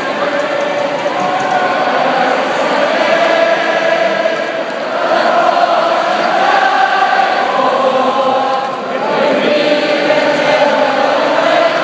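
A large crowd sings along and cheers.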